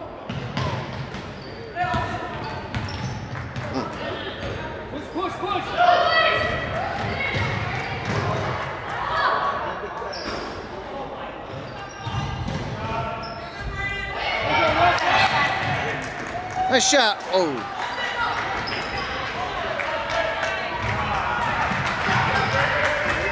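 A crowd of spectators chatters and calls out in a large echoing hall.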